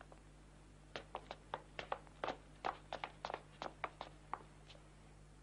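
Footsteps thud quickly on hard stairs.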